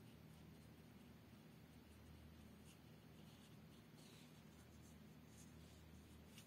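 A felt pen scratches softly on paper.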